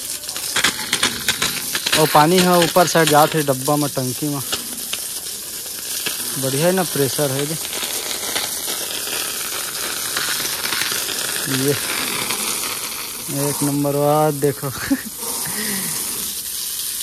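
A strong jet of water sprays and splashes against metal and mud.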